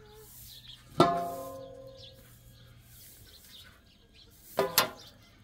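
A metal tray clangs and rings out loudly.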